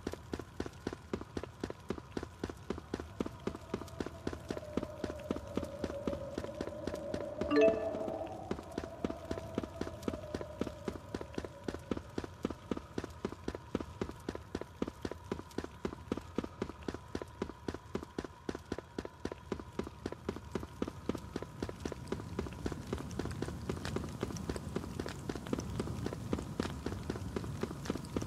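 Quick footsteps patter steadily on hard ground.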